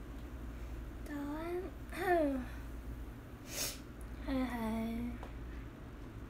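A young woman speaks softly and playfully, close by.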